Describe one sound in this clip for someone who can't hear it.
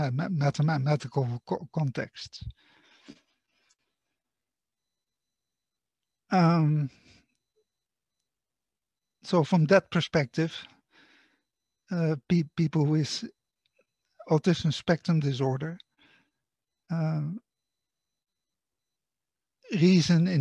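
A man lectures calmly through a microphone over an online call, with pauses between phrases.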